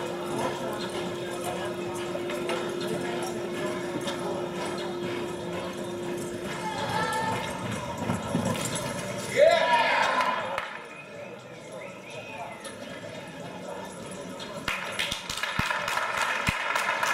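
A horse's hooves thud on soft dirt in a large echoing arena.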